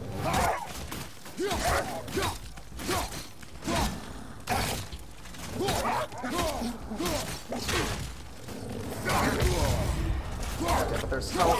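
Heavy blows and thuds land in a fight.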